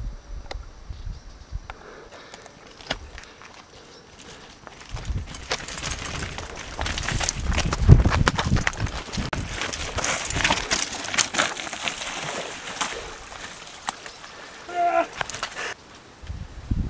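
Bicycle parts clatter and knock over rough ground.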